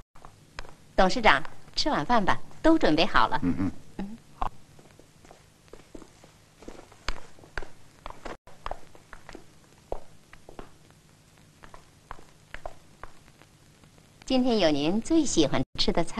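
A young woman speaks calmly and sweetly.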